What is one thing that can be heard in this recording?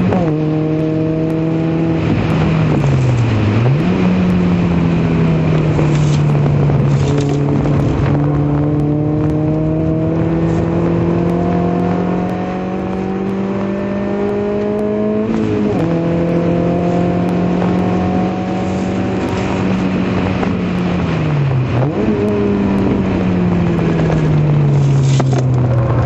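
Wind rushes loudly past the car.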